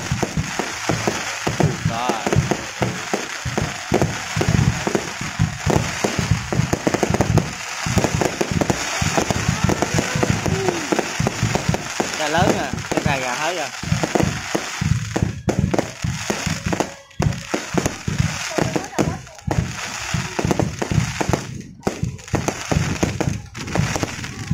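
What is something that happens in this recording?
Fireworks burst with deep booms.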